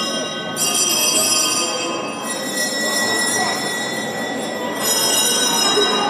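A wooden sled scrapes across a stone floor in an echoing hall.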